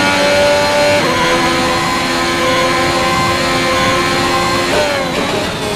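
A racing car engine briefly dips in pitch as gears shift.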